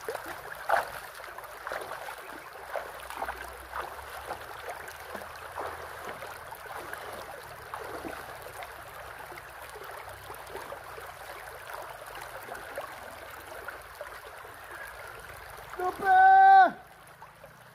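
A shallow stream rushes and babbles over rocks close by.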